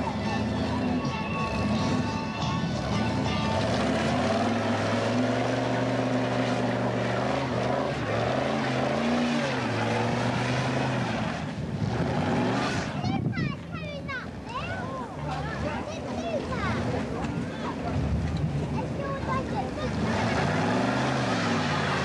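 A truck engine roars loudly as it revs.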